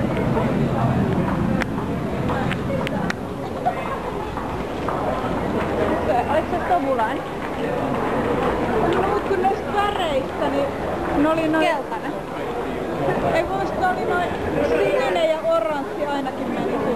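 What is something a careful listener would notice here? Footsteps shuffle and tap on a hard floor.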